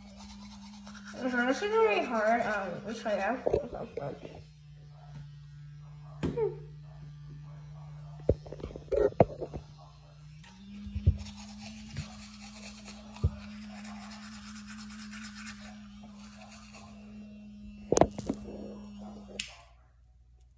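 An electric toothbrush buzzes steadily, changing pitch partway through.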